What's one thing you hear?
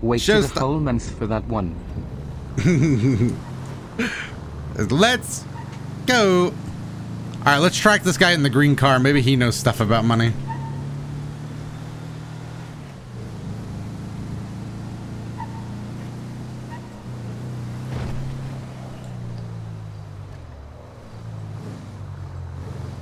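A van engine hums steadily as it drives along a street.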